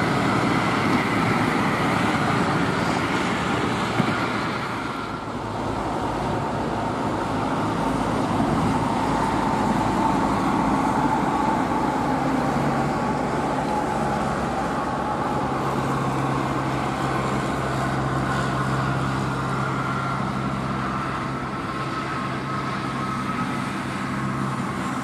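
A heavy truck's diesel engine rumbles steadily as it drives along a road.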